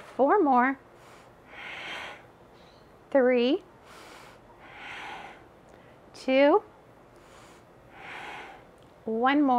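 A young woman calls out short, sing-song cues close by.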